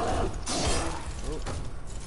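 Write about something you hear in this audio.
Electricity crackles and buzzes in short bursts.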